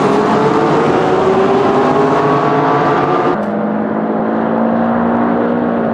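Racing car engines roar loudly as cars accelerate together.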